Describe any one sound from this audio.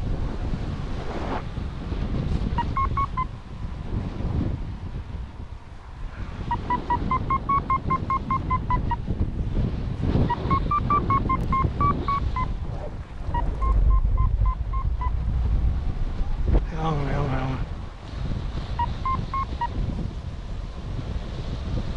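Wind rushes and buffets loudly past a paraglider in flight.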